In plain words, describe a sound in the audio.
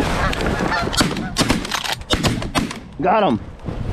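Shotgun blasts ring out in quick succession.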